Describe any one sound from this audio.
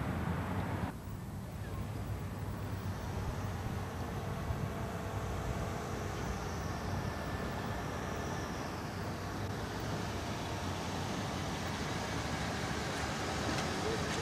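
A car engine hums as the car rolls slowly forward.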